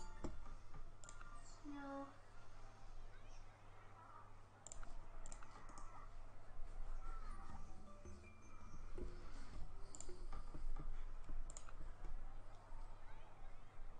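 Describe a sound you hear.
Game interface clicks sound as menus open and close.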